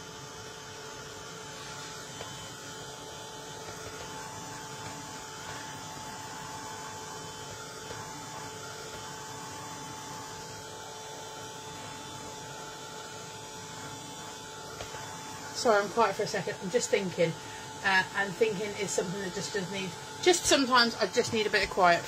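A heat gun blows with a steady whirring hum.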